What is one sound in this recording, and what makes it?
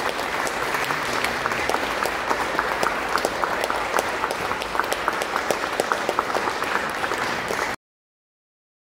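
An audience claps steadily in a large echoing hall.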